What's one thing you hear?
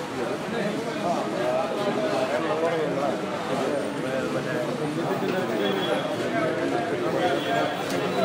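A crowd of men talk loudly over one another close by.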